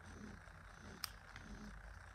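Metal tweezers click faintly.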